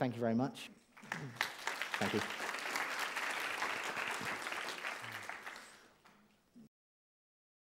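An audience applauds in a large hall and the applause fades.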